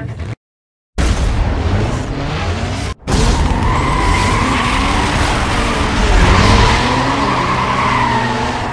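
Car engines rev loudly.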